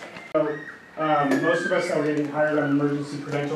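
A man speaks loudly and close by.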